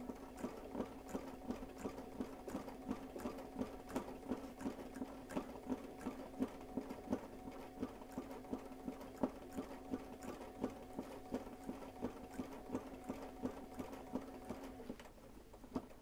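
An embroidery machine hums and clicks rapidly as its needle stitches.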